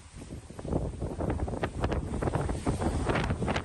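Waves wash against a ship's hull below.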